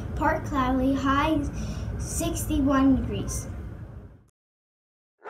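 A young girl speaks with animation into a microphone.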